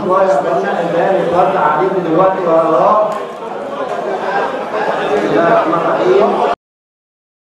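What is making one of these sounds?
A man speaks with animation before a crowd.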